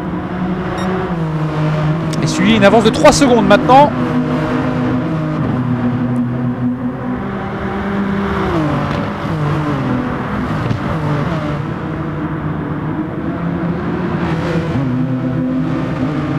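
Racing car engines roar loudly, rising in pitch and dropping as the gears shift.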